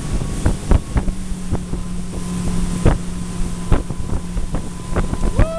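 A motorboat engine drones steadily close by.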